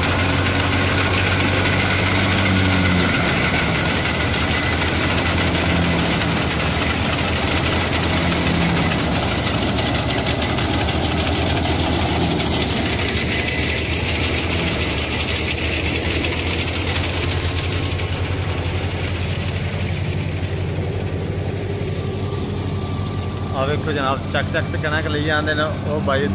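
A threshing machine engine drones loudly and steadily nearby.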